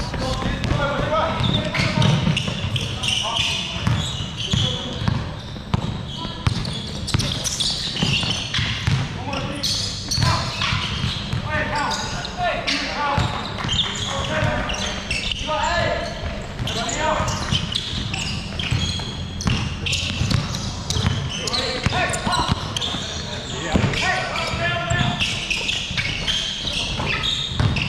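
A basketball bounces on a wooden floor, echoing in a large hall.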